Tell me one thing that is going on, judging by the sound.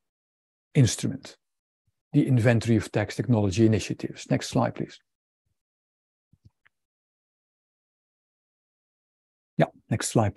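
A man speaks calmly through an online call microphone, pausing between phrases.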